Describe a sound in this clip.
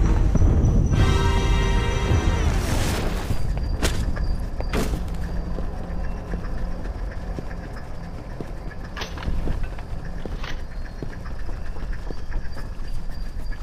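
Footsteps scuff over stone.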